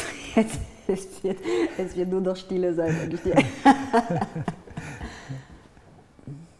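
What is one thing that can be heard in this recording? A woman laughs heartily close to a microphone.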